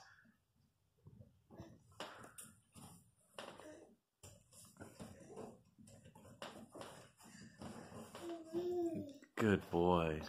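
A baby pats and rustles a cardboard box.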